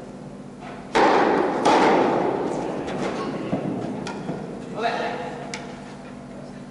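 Tennis balls are struck with rackets and bounce, echoing in a large hall.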